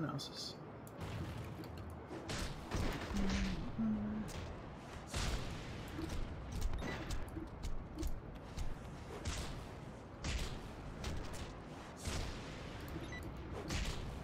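Punches and blasts thud and crack in a fight.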